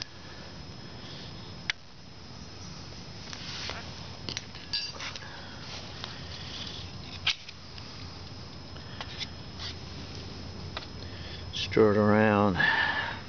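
A metal spoon scrapes and rattles grit across a metal tray.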